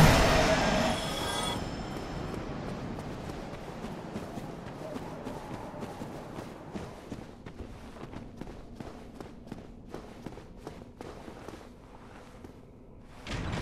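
Armoured footsteps run quickly over stone.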